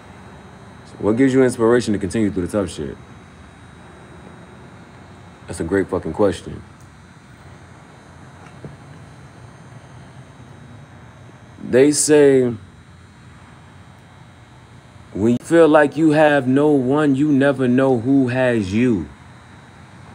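A man speaks close up, in a relaxed, animated voice.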